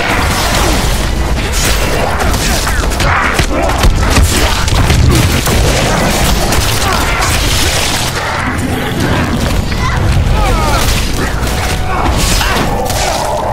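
Heavy weapon blows thud and slash into a body.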